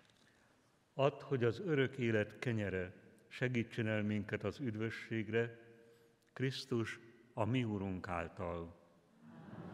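An elderly man chants slowly through a microphone in a large echoing hall.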